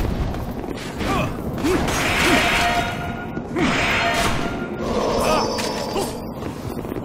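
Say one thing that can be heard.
Swords clash and clang against shields.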